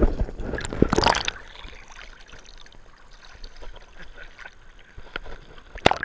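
Small waves lap at the surface.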